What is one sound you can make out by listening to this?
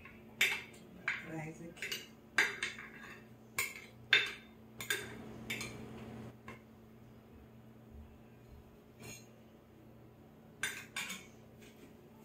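A metal spatula scrapes and taps against a ceramic baking dish.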